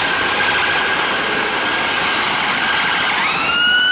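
A double-decker bus drives past close by.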